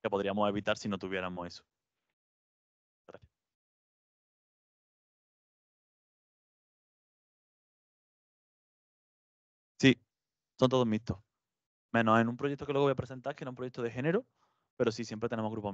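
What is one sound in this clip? A man speaks into a microphone in a large room, with pauses between phrases.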